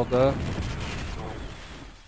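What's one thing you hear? A gun fires a single shot.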